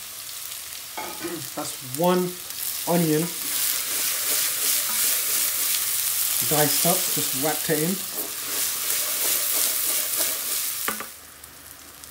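Food sizzles and crackles in hot oil.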